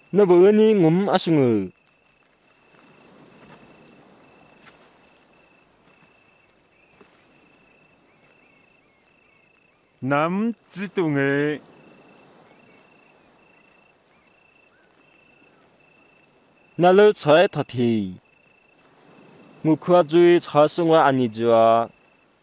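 A man speaks calmly and clearly, close by, in short bursts with pauses.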